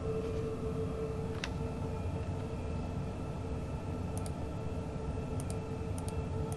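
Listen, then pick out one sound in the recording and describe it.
A train rumbles steadily along the tracks with a low hum.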